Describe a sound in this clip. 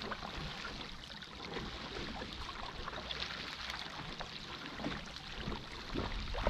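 Water splashes and churns in a boat's wake.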